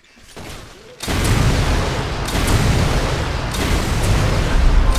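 A rocket launcher fires with a loud blast.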